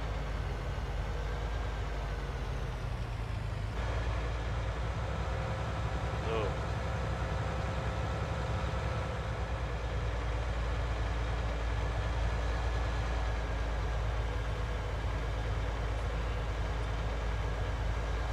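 A man talks calmly into a headset microphone.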